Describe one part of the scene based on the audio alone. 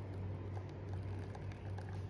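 Water pours into a cup.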